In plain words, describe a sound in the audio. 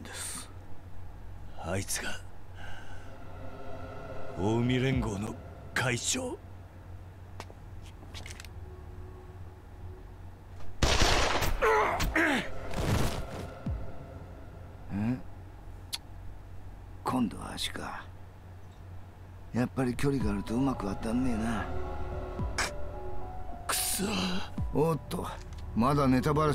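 A man speaks in a low, tense voice.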